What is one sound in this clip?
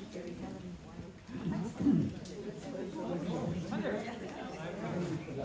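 Older men talk with each other nearby in a large room.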